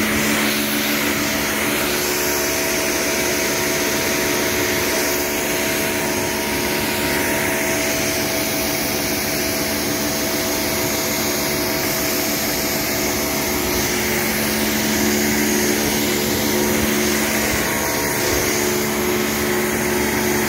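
A pressure washer motor hums steadily.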